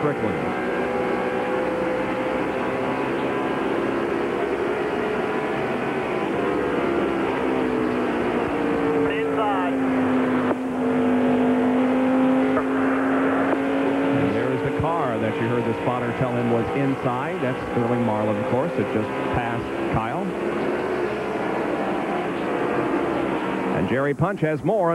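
A race car engine roars loudly at high speed from inside the car.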